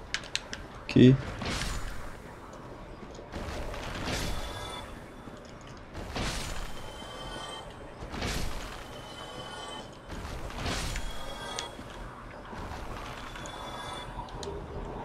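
A heavy blade whooshes through the air.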